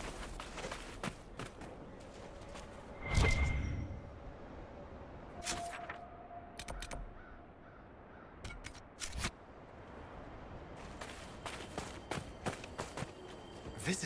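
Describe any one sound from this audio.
Footsteps crunch softly on sand.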